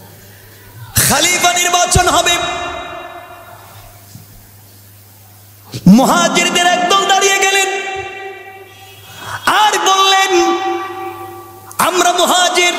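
A man preaches loudly and with passion into a microphone, his voice echoing through loudspeakers.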